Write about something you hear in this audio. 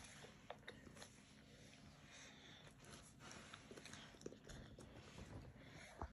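A young girl speaks softly nearby.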